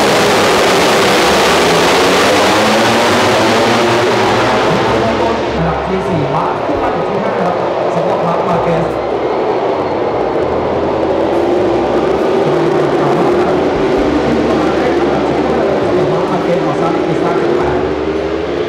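Many racing motorcycle engines roar loudly at high revs as the pack speeds past.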